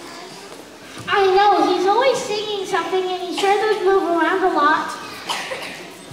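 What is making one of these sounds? A young girl sings into a microphone through loudspeakers in a large echoing hall.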